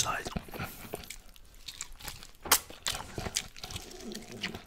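A man bites into crispy meat and chews loudly, close to a microphone.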